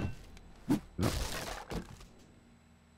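A cardboard box rustles as it is opened.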